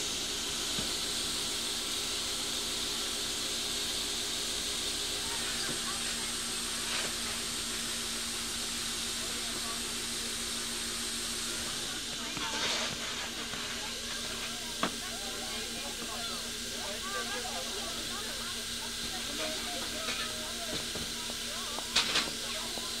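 A steam locomotive hums and hisses steadily at standstill.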